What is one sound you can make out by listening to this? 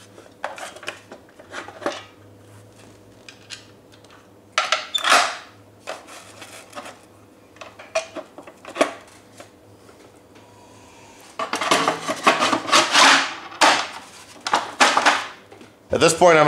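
Plastic parts click and knock as a seat back is fitted.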